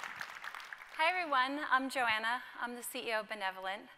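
A woman speaks warmly to an audience through a microphone.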